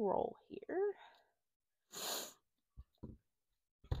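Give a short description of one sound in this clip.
Scissors snip through thin fabric.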